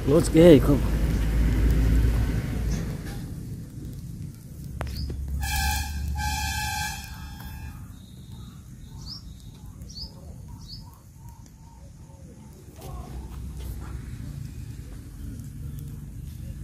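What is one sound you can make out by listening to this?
A metal snake hook scrapes on the concrete ground.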